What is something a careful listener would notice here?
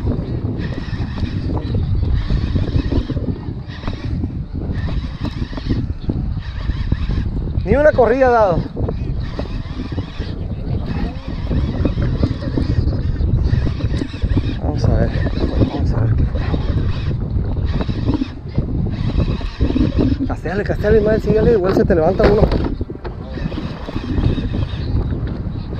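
A fishing reel clicks and whirs as its handle is cranked in bursts.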